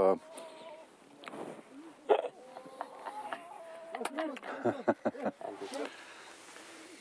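An older man talks and laughs close by.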